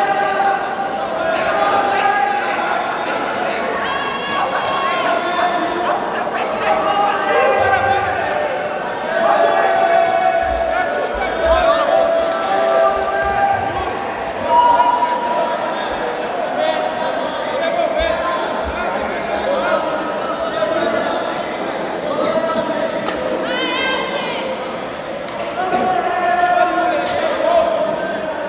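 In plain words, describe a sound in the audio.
Spectators shout and call out loudly.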